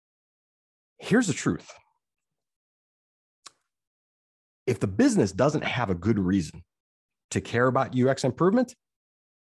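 An adult man speaks calmly over an online call.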